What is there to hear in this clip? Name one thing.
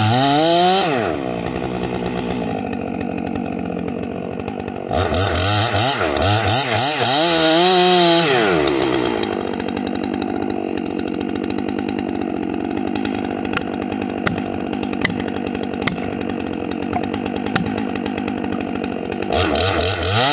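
A chainsaw idles with a low, steady rattle.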